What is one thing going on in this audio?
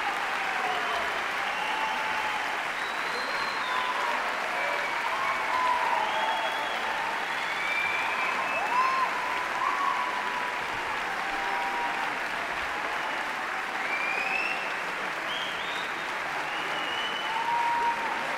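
A large orchestra plays in a big echoing hall.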